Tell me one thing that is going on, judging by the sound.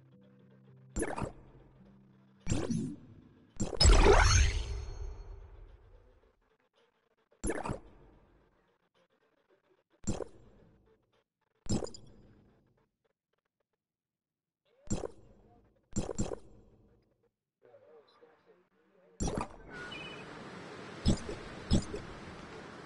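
Short interface chimes ring out as menu choices are made.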